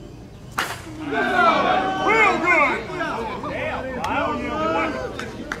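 Several men shout and cheer excitedly nearby, outdoors.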